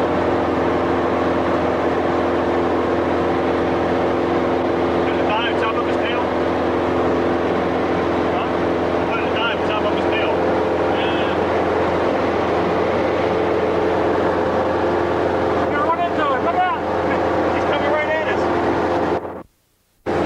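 A propeller engine drones loudly and steadily from close by.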